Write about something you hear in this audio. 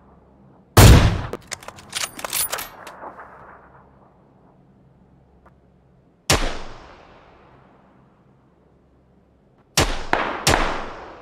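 Loud rifle shots boom and echo away.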